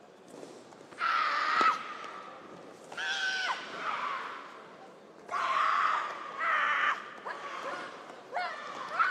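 Young women shout sharply in unison, their cries echoing in a large hall.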